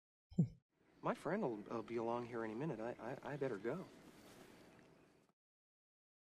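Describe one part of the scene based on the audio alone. A young man speaks calmly, as if heard from a film soundtrack.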